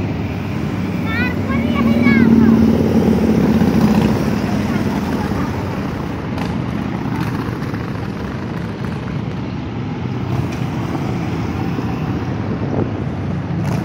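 A line of cruiser motorcycles rumbles past on the road, one after another.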